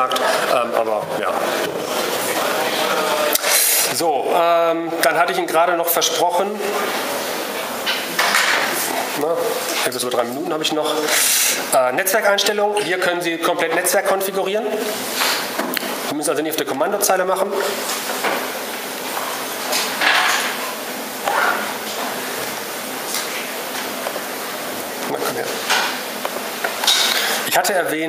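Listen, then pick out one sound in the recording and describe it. A man lectures calmly through a microphone in a large echoing hall.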